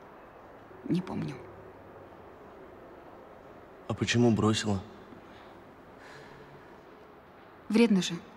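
A young man speaks nearby.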